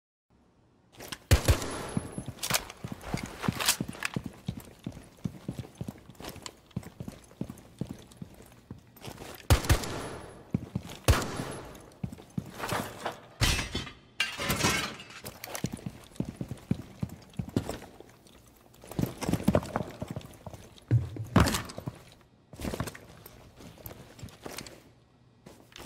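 Footsteps thud on a hard floor, moving about a room.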